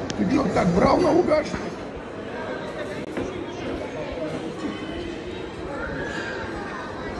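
Cutlery clinks on plates.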